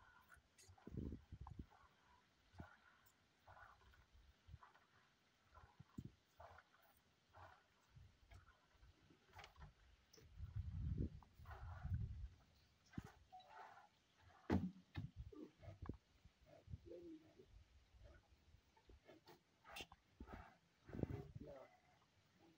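A rhino calf snorts and huffs into a bucket.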